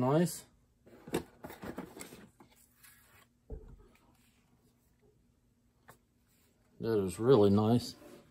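Cardboard rustles and scrapes as a crossbow is lifted out of a box.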